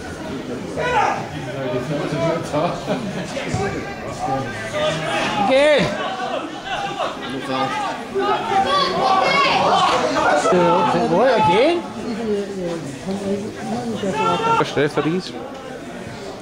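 A crowd of spectators shouts and chants nearby, outdoors.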